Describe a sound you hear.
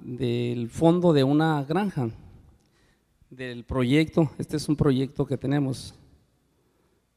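A middle-aged man speaks calmly into a microphone over loudspeakers.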